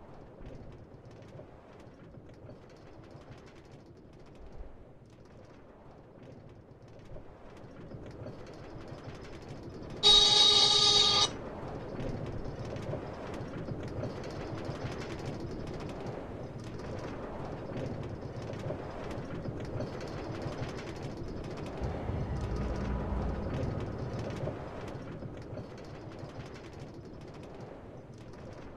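A minecart rolls and rattles along rails, growing louder as it speeds up.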